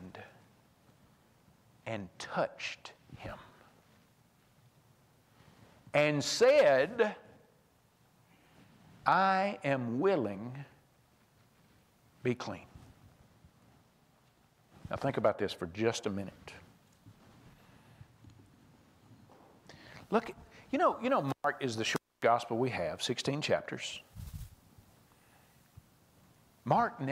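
A man speaks with animation through a microphone in a large echoing hall, pausing between phrases.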